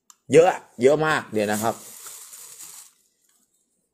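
A plastic bag rustles as a hand moves through it.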